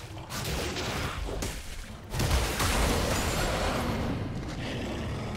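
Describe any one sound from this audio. Video game sound effects of magic blasts and blows ring out.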